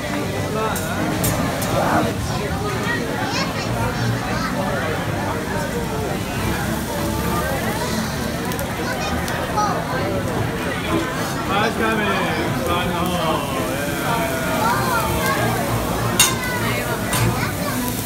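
A metal spatula clicks and scrapes on a hot grill.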